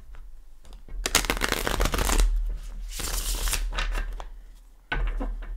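Playing cards are shuffled with a quick riffling rustle.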